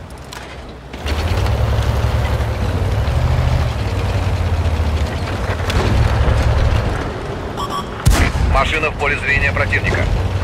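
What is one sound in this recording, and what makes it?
A tank engine rumbles and roars.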